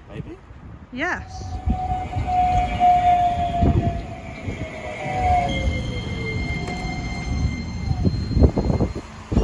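A tram rolls in and brakes with a falling squeal.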